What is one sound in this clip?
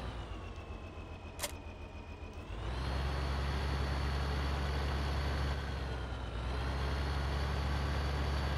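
A tractor engine drones steadily and revs up louder as the tractor drives off.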